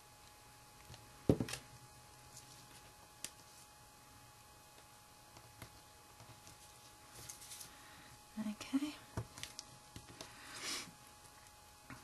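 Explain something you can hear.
Paper rustles and crinkles softly as fingers fold and press paper pieces.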